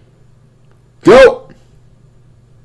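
A young man shouts out briefly close to a microphone.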